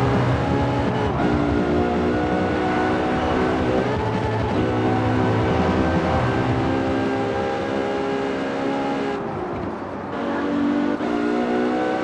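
A high-revving car engine roars, rising in pitch and dropping briefly at each gear change.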